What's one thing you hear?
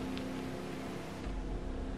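A flamethrower roars in a steady whoosh.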